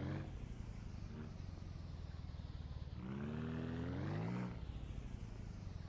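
A small engine chugs steadily, revving up briefly before settling back.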